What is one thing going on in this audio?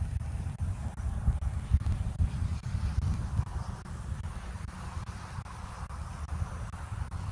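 Wind blows and rumbles against the microphone outdoors.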